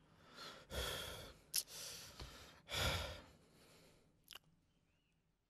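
A man gulps down water noisily.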